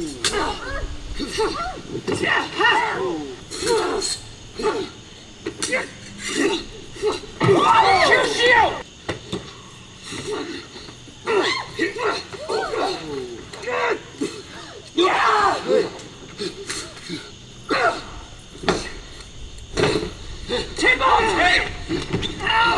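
A man and a woman shout and grunt as they fight.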